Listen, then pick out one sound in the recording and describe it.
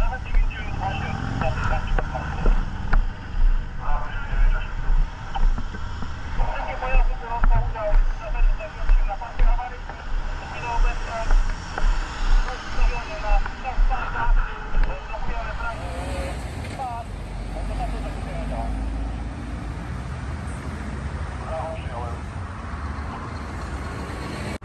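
Traffic rumbles past on a busy road outdoors.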